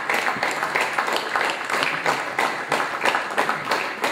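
A crowd applauds with rapid clapping.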